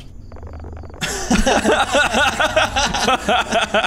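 A man calls out with surprise, close by.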